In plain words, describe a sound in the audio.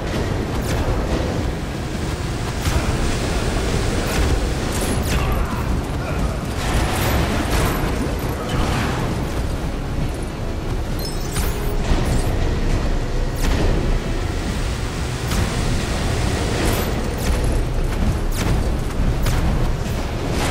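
Small bricks clatter and pop as they break apart.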